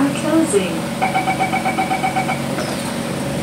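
A door warning chime beeps rapidly.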